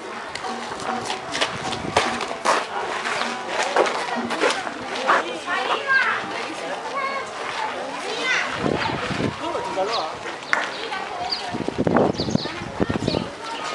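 People chatter nearby outdoors, men and women talking casually.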